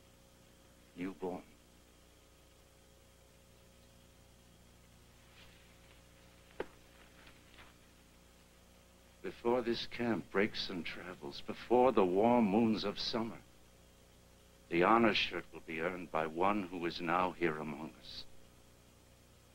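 An older man speaks gravely and forcefully, close by.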